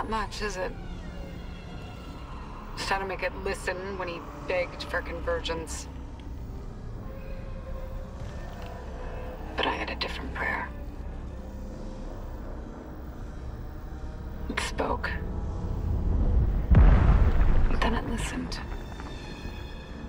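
A woman speaks quietly and wearily through a recorded playback.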